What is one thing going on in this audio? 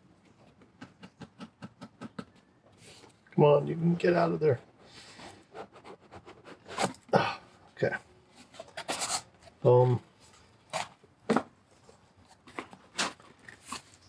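Hands handle a cardboard box, tapping and rubbing its surface.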